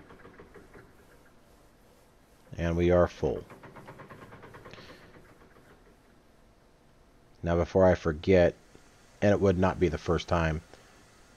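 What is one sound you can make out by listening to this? A steam train rumbles along the tracks with a steady rhythmic chugging.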